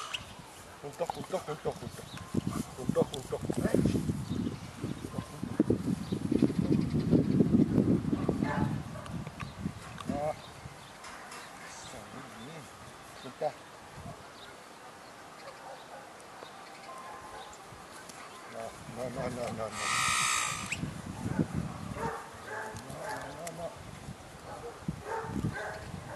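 A man calls out short commands to a dog outdoors.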